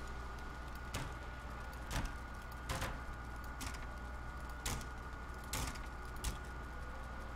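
Short hammering knocks ring out one after another.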